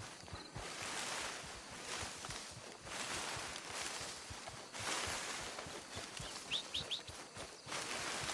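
Footsteps crunch through dry grass and leaves.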